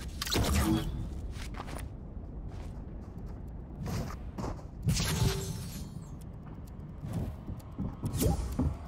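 Short game sound effects thump and whoosh now and then.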